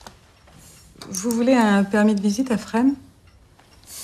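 A woman speaks expressively, close by.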